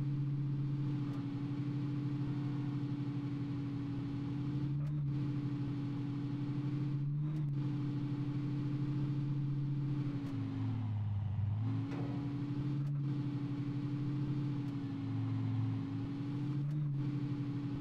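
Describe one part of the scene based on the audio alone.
A car engine hums steadily and shifts pitch as the car speeds up and slows down.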